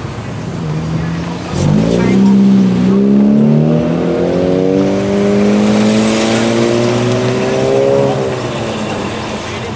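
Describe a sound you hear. Car engines rev loudly and rise in pitch as cars accelerate away one after another.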